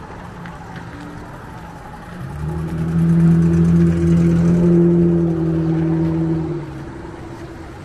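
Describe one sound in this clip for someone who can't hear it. A small cart's motor hums loudly as it passes close by.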